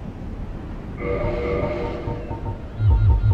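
A menu chime rings out.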